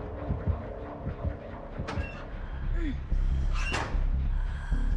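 A metal locker door bangs open.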